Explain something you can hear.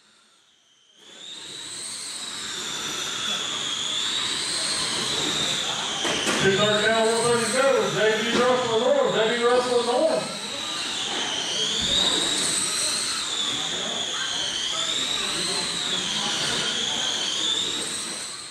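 Small electric motors of remote-control cars whine, rising and falling in pitch as they race around the track.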